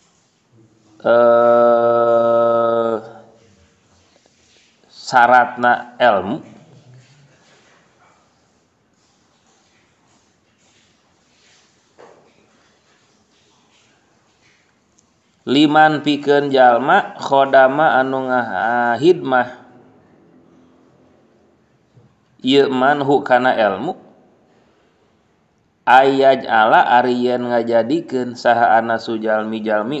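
A man chants in a melodic voice through a microphone, in phrases with pauses between them.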